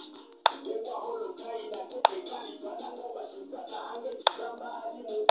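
A short wooden click sounds as a chess piece is set down.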